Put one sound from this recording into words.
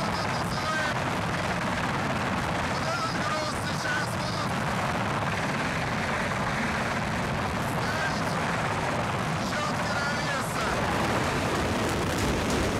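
Strong wind roars and buffets outdoors.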